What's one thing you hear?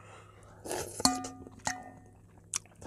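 A spoon clinks against a metal pot.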